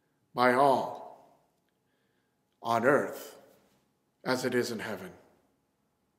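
A man speaks calmly close by in short phrases.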